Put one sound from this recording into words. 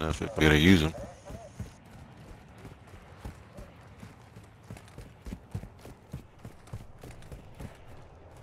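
Footsteps run quickly on hard pavement.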